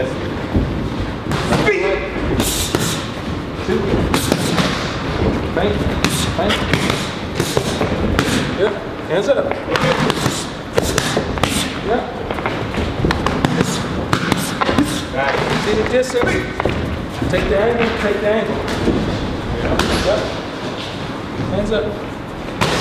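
A man talks and calls out instructions loudly.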